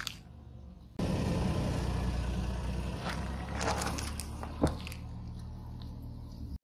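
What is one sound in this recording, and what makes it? A car tyre rolls slowly over pavement with a low rumble.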